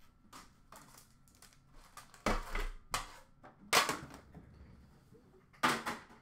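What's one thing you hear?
Card packs rustle and slide as hands handle them.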